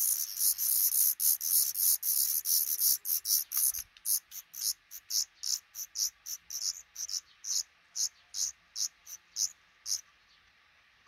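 Baby birds chirp and peep shrilly and rapidly close by, then slow down and stop.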